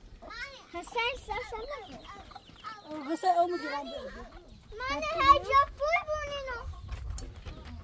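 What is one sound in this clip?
A young child speaks excitedly nearby.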